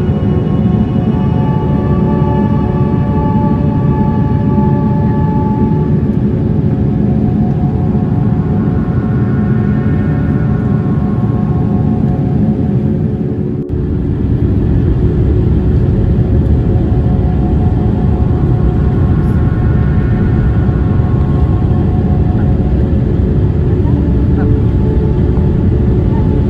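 Jet engines roar steadily with a high whine, heard from inside an airliner cabin.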